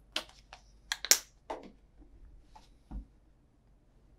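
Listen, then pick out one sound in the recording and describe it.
A bottle is set down on a wooden table with a knock.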